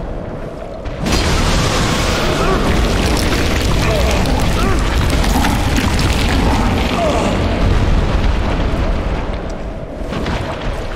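A huge creature roars and thrashes loudly.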